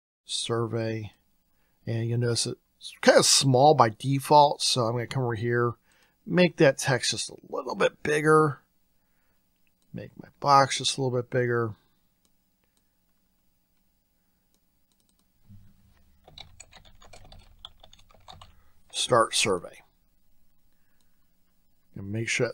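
A middle-aged man talks calmly and close to a microphone, with pauses.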